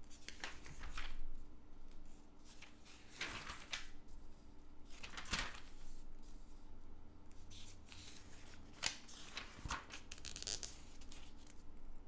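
Catalog pages rustle and flip.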